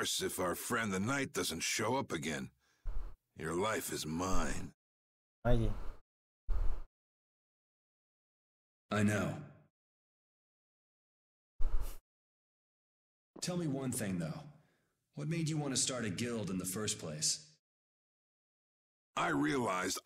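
A man talks with animation into a microphone, close by.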